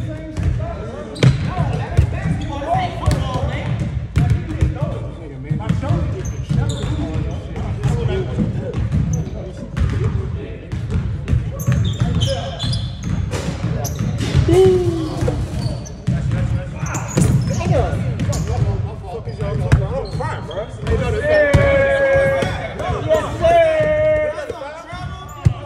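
Several young men talk and call out across the gym.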